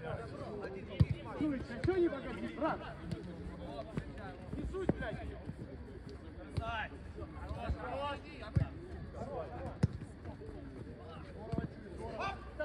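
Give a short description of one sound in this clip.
A football is kicked with sharp thumps.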